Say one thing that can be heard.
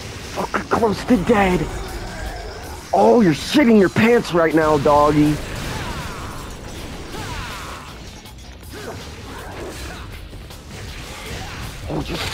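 A sword slashes and clangs repeatedly.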